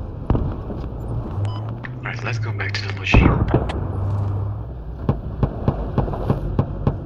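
A vehicle's body rattles and thumps over rough ground.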